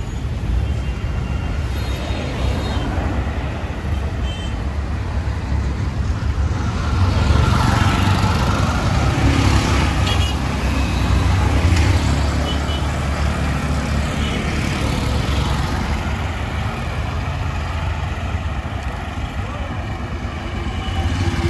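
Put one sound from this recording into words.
A vehicle engine rumbles steadily while driving along a road.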